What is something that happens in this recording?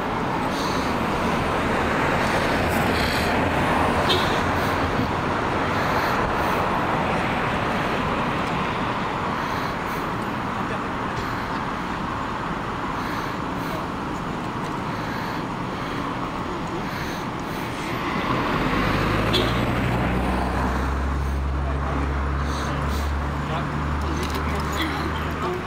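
Men talk quietly at a distance outdoors.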